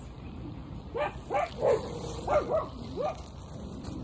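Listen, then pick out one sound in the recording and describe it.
A dog howls outdoors.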